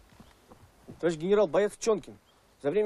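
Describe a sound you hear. A man speaks sternly nearby.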